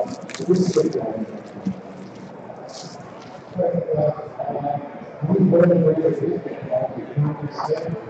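Cardboard packs slap and click as they are shuffled.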